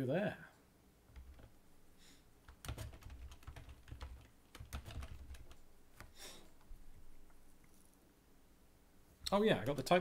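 Computer keys click as a man types.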